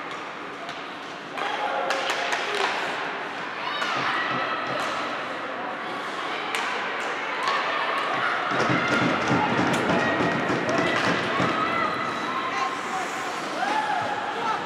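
Voices of players and spectators echo in a large arena.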